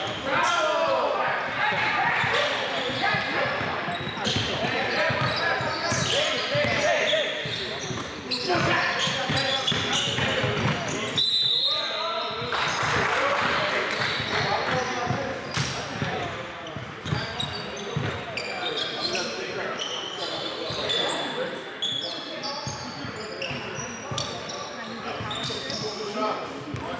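Young men shout and call out to each other during play.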